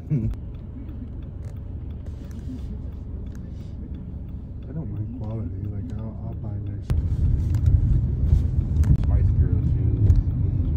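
A car engine rumbles steadily from inside a moving car.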